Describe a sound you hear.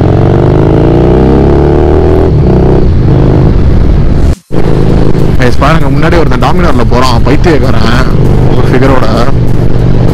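A motorcycle engine hums steadily while riding at speed.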